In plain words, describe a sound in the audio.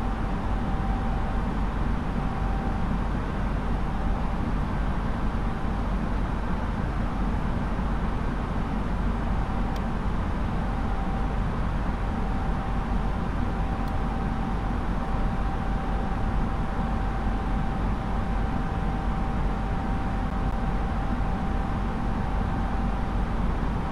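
A steady electronic tone hums alongside.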